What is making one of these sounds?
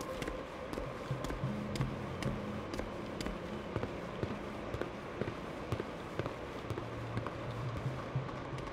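Footsteps fall steadily at a walking pace, partly on hollow wooden planks.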